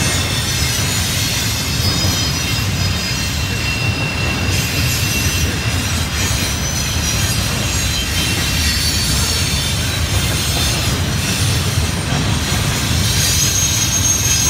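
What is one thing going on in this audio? Steel wheels squeal faintly on the rails.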